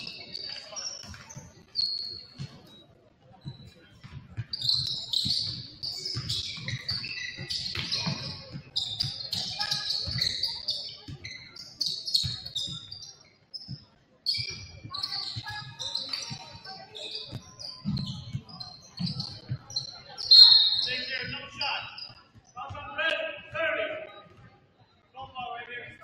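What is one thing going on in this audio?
A basketball thumps as it is dribbled on the floor.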